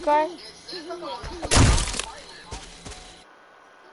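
An axe smashes into a wooden door.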